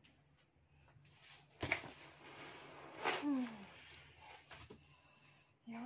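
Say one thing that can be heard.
Cardboard rustles and creaks as a box is pressed down.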